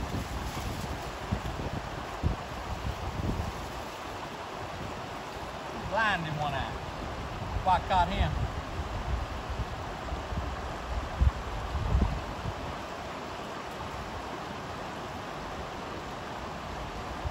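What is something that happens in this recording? A mountain stream rushes over rocks close by.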